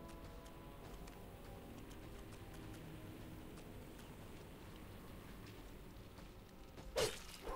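Soft game music plays steadily.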